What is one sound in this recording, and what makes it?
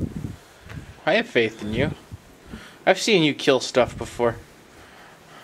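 A young man speaks casually close by.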